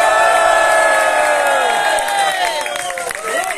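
A crowd cheers loudly in an echoing hall.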